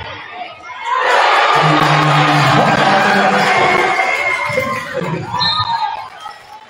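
A large crowd cheers and roars in an echoing gym.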